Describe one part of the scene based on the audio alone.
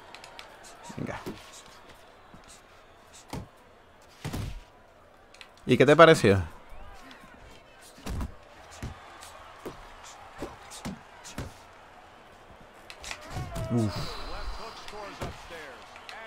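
Punches land with dull thuds.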